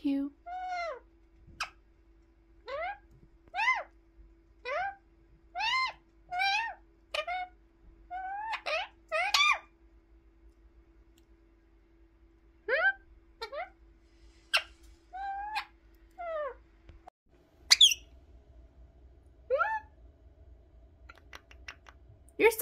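A parrot squawks and chirps in short, rising calls close by.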